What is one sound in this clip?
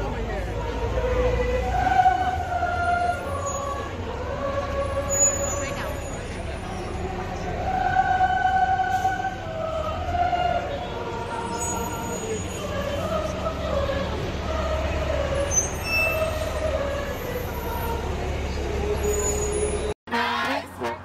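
A large crowd sings together outdoors in a city street.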